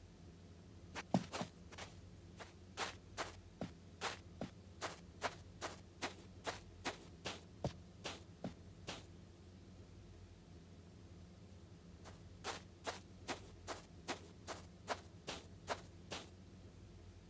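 Light footsteps tap steadily on a soft floor.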